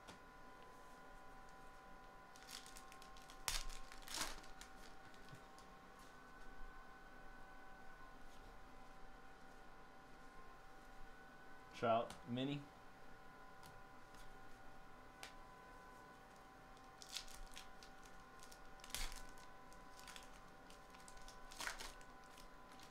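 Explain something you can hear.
Foil card packs crinkle and tear as they are opened.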